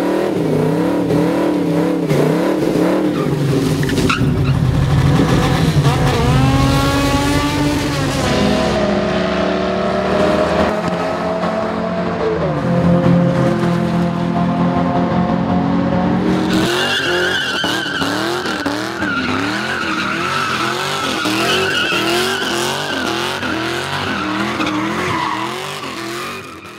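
A car engine revs hard and roars.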